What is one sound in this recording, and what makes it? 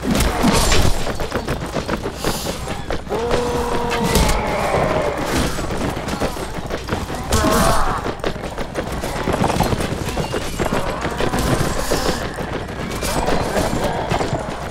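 Horses gallop over the ground in a battle.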